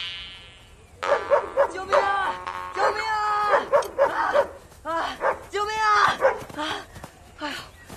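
A young girl shouts loudly outdoors.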